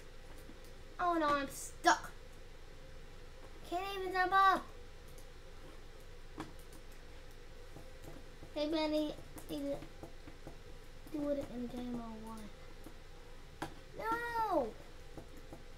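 A boy talks with animation in short bursts, close to a microphone.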